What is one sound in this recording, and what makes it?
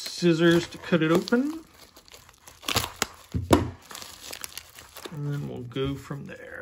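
A padded plastic mailer crinkles as it is handled.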